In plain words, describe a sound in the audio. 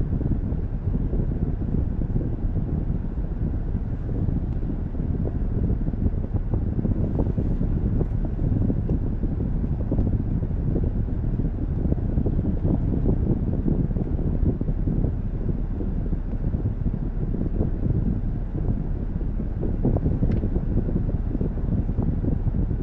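A car engine idles with a low steady rumble, heard from inside the car.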